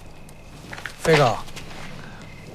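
A young man calls out in a friendly way, close by.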